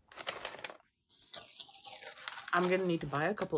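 A paper snack bag rustles.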